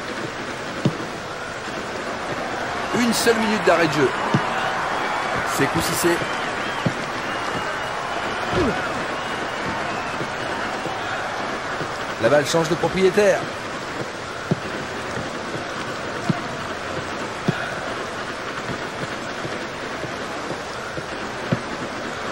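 A football is kicked with short thumps.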